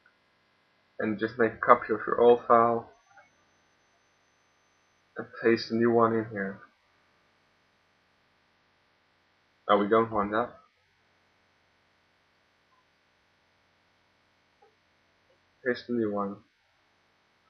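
A young man speaks calmly in short bursts, close to a microphone.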